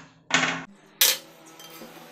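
A metal saw blade clanks as it is lifted out.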